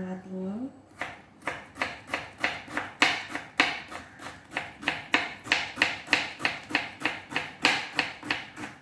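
A knife chops quickly and steadily on a wooden cutting board.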